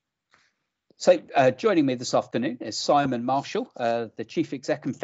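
A middle-aged man talks with animation over an online call.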